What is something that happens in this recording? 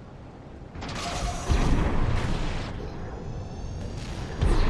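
A large robot's jet thrusters roar in a loud burst.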